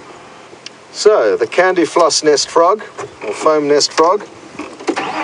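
A vehicle engine cranks and starts up.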